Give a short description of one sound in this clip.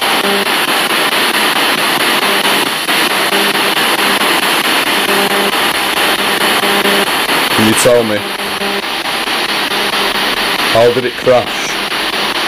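A radio receiver hisses with steady static.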